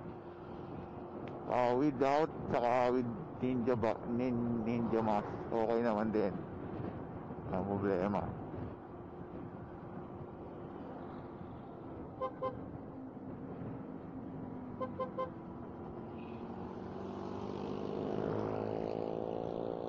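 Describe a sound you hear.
A motorcycle engine hums steadily while riding, rising in pitch as it speeds up.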